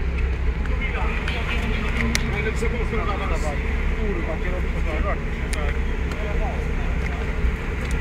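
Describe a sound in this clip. Young men talk outdoors nearby.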